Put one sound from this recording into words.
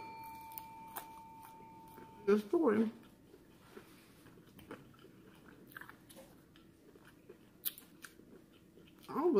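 A woman chews and smacks her lips close to a microphone.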